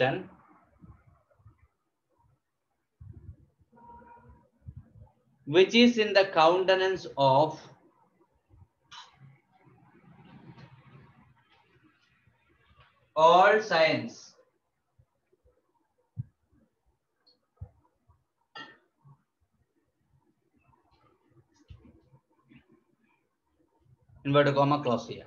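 A man speaks clearly and with emphasis, close by.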